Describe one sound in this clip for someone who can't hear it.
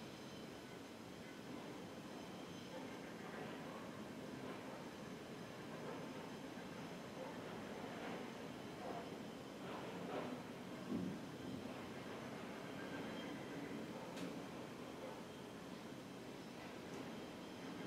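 A man speaks softly and slowly into a close microphone.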